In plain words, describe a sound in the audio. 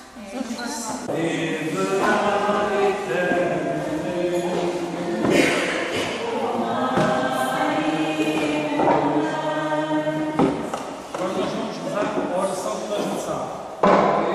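A man sings slowly through a microphone in an echoing hall.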